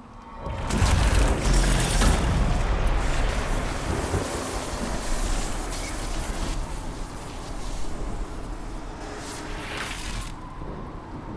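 A loud magical vortex roars and rumbles.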